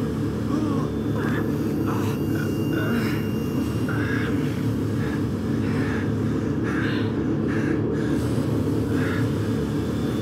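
A man groans and breathes heavily.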